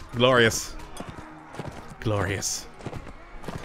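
Horses gallop over grass in the distance.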